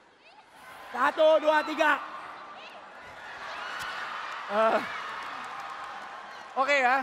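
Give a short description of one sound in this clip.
A young woman speaks and laughs through a microphone.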